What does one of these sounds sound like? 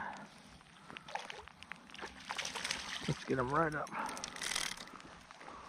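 A fish splashes at the surface of the water.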